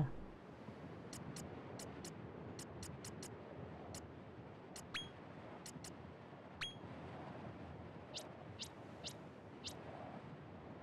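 Soft menu clicks tick again and again.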